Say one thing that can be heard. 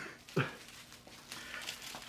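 Plastic bubble wrap rustles and crinkles as it is handled.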